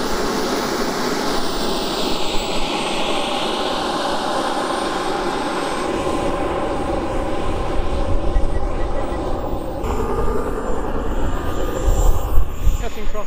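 A small vehicle's motor whines loudly as it speeds along.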